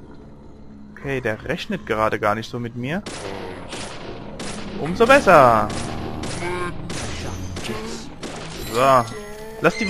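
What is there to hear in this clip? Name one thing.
A pistol fires shot after shot.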